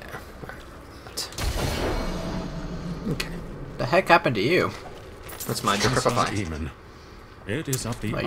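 Game combat sounds clash and thud as skeleton warriors fight.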